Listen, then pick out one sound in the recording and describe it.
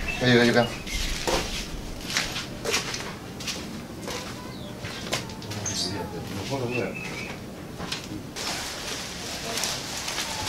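Footsteps scuff on rough ground outdoors.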